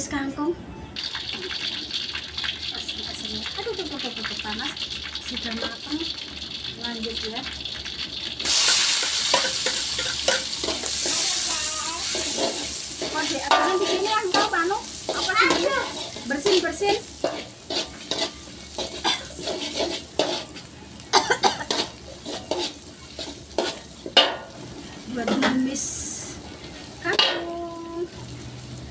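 Oil sizzles steadily in a pan.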